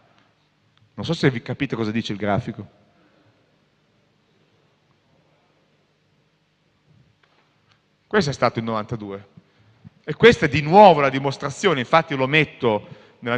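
A man speaks calmly, explaining in a lecturing tone.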